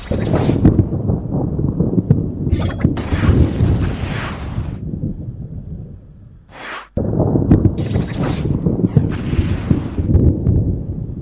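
Game weapons strike enemies with rapid impacts.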